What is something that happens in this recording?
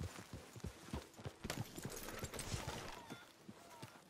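Horse hooves clop on soft ground.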